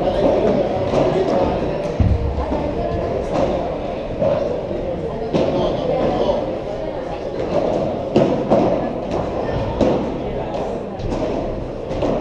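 Padel rackets strike a ball back and forth in a large echoing hall.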